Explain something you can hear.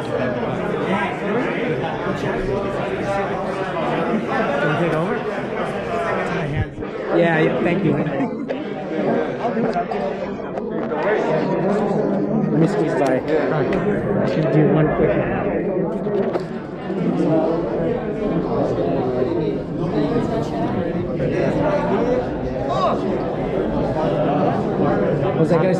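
A crowd of men and women chatters loudly nearby, echoing in a large room.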